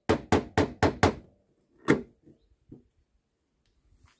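A suction cup pops off a car panel.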